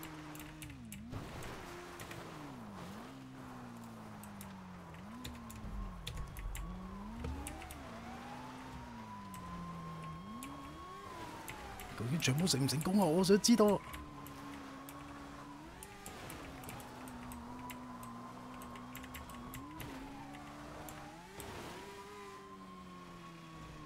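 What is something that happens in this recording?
A motorbike engine revs up and down over and over.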